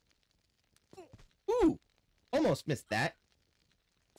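A young man speaks loudly into a close microphone.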